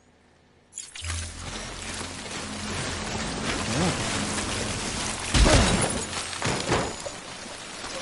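Footsteps crunch on loose rocky ground.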